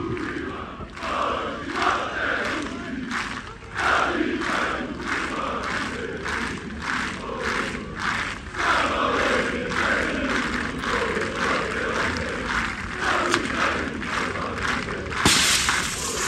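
A large crowd claps in a steady rhythm.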